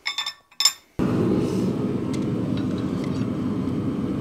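Metal tongs clank against an iron anvil.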